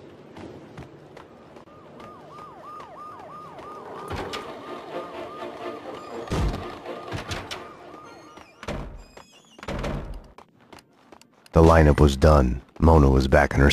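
Footsteps thud quickly on hard floors and stairs.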